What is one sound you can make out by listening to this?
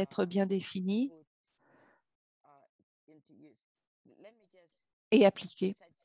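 An elderly woman speaks earnestly over an online call.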